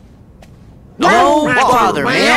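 A young man answers cheerfully.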